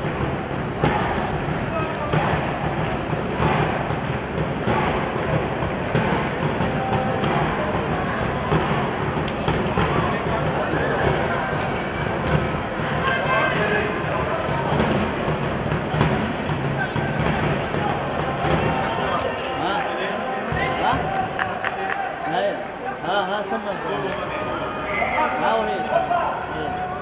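Players shout to each other across a large open field.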